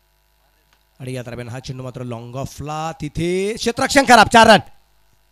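A man commentates excitedly through a microphone.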